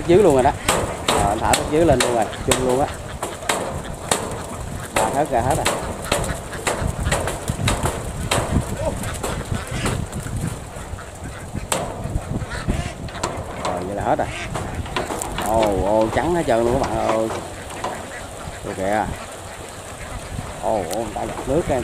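Many ducks quack loudly and continuously.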